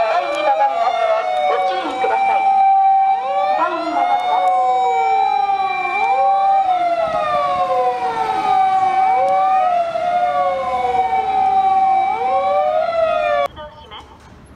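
Fire engine sirens wail loudly close by, rising and falling over each other.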